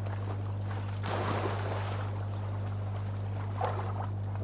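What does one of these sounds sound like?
Water splashes as someone wades and swims.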